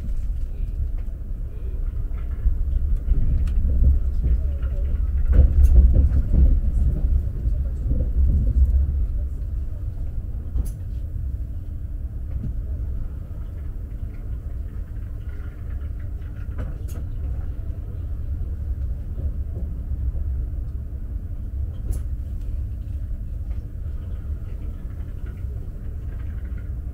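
A moving train rumbles steadily, heard from inside a carriage.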